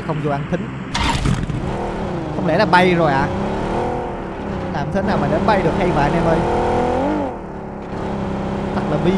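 A car engine runs and revs as the car drives off.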